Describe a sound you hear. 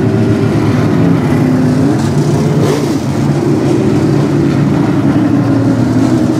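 A race car engine revs up and down as it speeds past.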